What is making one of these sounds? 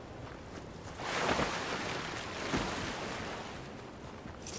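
A character splashes heavily into water.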